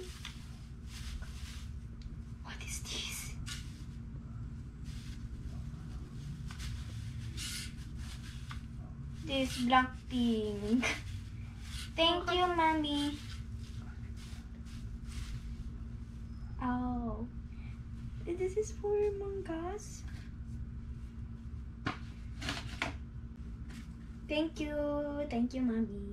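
Fabric rustles as a garment is handled and shaken.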